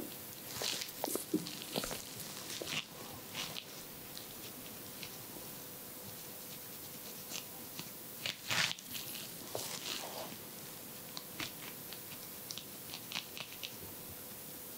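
A small metal tool scrapes and taps softly against fingernails, close by.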